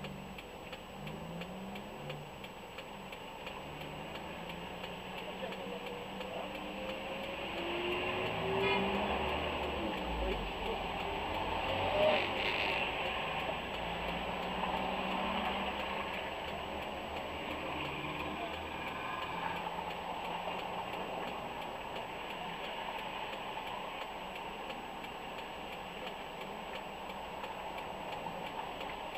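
Traffic rumbles steadily past outdoors.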